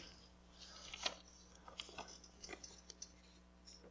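Paper rustles in a man's hands.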